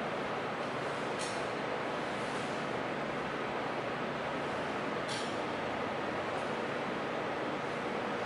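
A machine blows with a steady, loud rushing noise.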